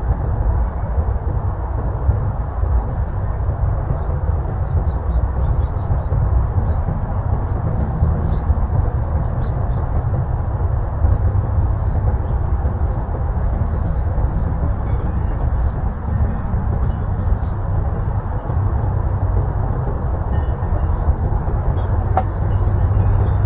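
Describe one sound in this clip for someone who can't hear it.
Wind blows steadily outdoors, rumbling against the microphone.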